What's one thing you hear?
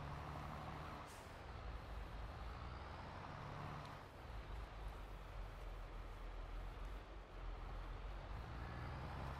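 A tractor engine idles with a low, steady rumble.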